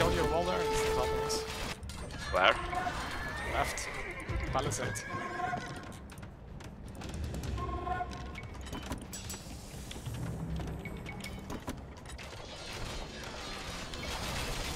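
Short game chimes and clicks sound now and then.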